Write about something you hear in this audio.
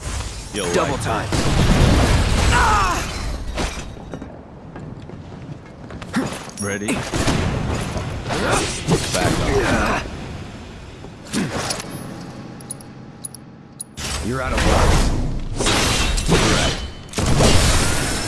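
Swords clash and slash with metallic ringing.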